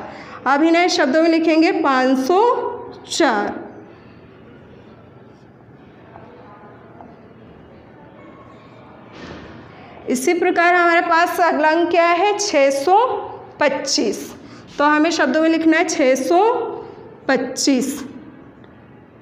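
A young woman speaks clearly and at a measured pace, close by.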